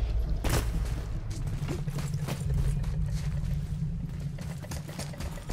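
Heavy footsteps splash through shallow water.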